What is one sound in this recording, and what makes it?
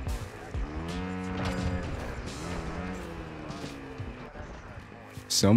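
An engine revs and whines as an off-road vehicle drives over rough ground.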